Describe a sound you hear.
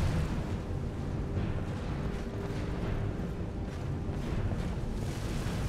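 Flames crackle and hiss softly.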